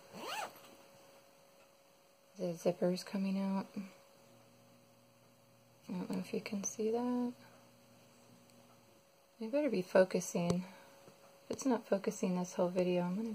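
Fabric rustles softly as hands fold and pinch it.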